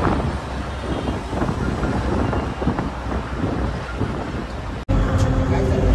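Wind rushes in through an open bus window.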